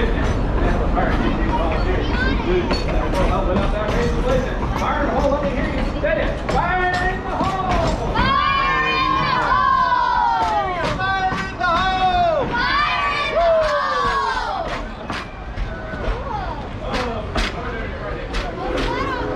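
A small train rolls along the tracks, its wheels clacking over the rail joints.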